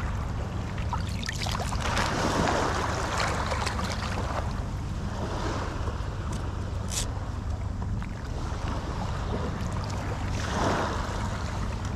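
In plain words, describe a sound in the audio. Water splashes in the shallows.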